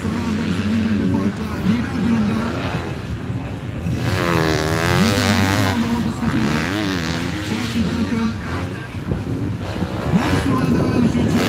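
Motocross bikes rev hard as they race past.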